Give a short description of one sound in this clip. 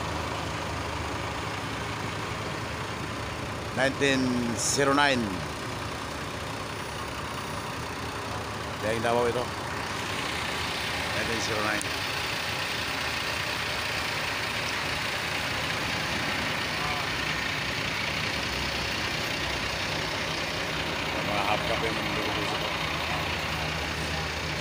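A bus engine idles with a steady low hum nearby.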